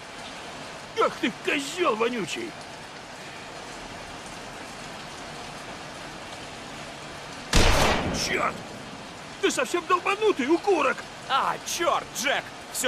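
A man answers fearfully.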